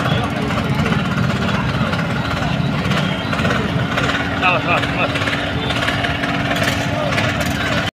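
Loud music plays through loudspeakers.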